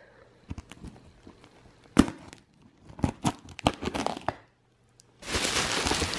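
A blade scratches and slices through packing tape.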